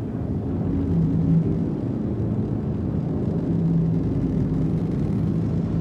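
A spaceship's engine hums low and steady.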